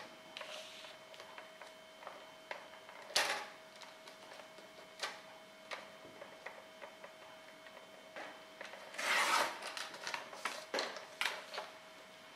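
A paper trimmer blade slides along, cutting card with a scratchy rasp.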